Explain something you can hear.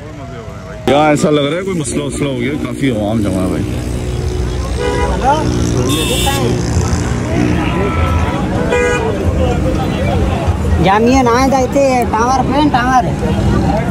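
A crowd of men chatters outdoors.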